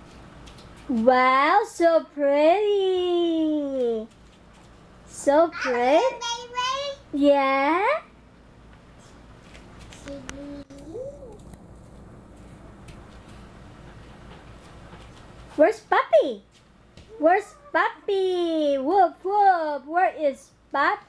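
A toddler girl chatters and squeals in a high voice close by.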